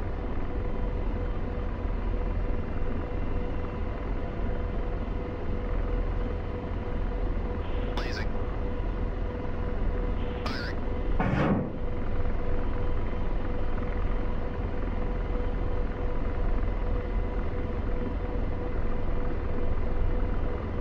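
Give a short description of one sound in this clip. A helicopter's engine and rotor drone steadily from inside the cockpit.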